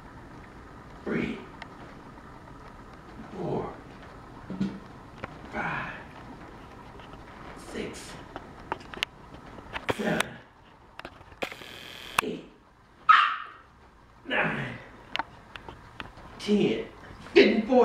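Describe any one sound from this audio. A man breathes out hard with effort.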